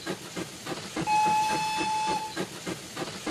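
A toy train whistle blows a steady tone.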